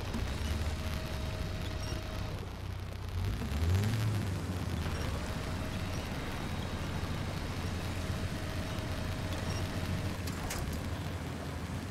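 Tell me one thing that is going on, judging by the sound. A heavy engine rumbles and revs steadily.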